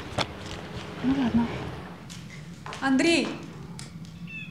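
A young woman speaks briefly nearby.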